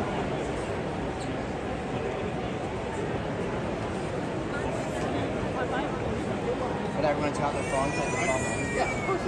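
A large stadium crowd murmurs steadily all around.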